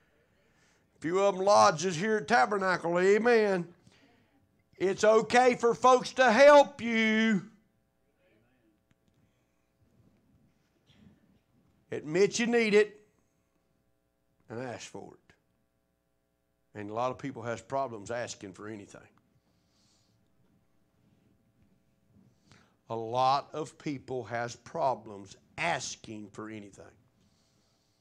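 A man preaches with animation into a microphone, heard through loudspeakers with pauses between phrases.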